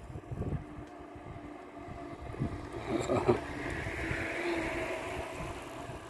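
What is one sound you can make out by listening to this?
Bicycles roll past close by on a paved road.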